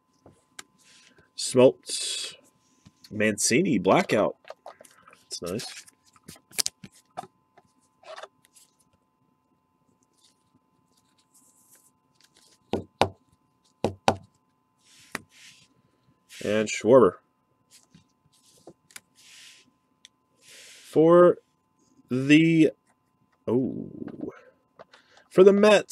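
Cards in stiff plastic sleeves click and rustle as hands shuffle through them.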